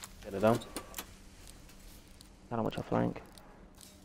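Buttons click on a detonator box.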